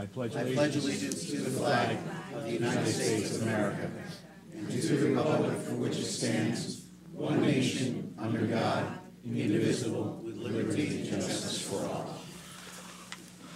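A crowd recites together in unison in a large room.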